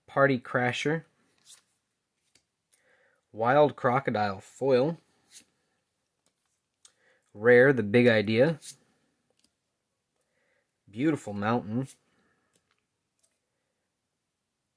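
Playing cards slide and rustle softly against each other.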